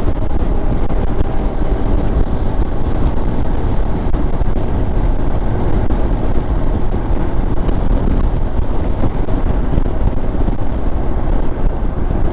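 A car passes by in the opposite direction.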